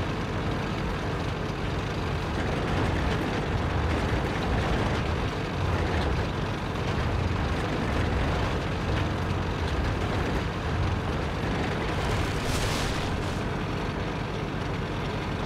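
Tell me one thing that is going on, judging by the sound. Tank tracks clank and rattle.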